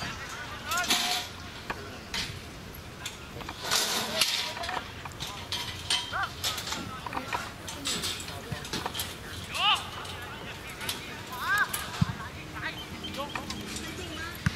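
Players shout to one another across an open field outdoors.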